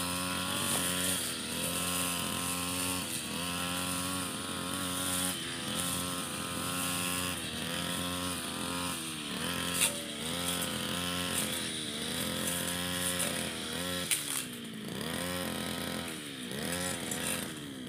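A string trimmer whips through grass and weeds.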